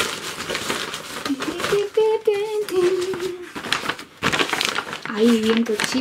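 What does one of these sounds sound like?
A paper bag crinkles and rustles.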